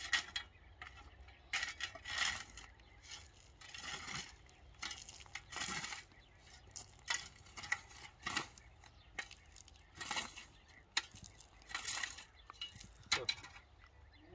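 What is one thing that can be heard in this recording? A shovel scrapes and scoops dry earth.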